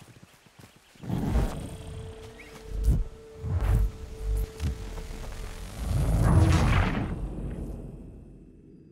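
Deep rumbling booms and whooshes swell and fade.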